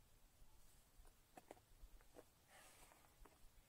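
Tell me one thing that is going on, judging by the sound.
Footsteps scuff and crunch on rocky ground close by.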